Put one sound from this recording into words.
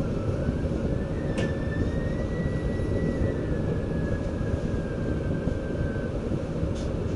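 Train wheels squeal faintly on the track.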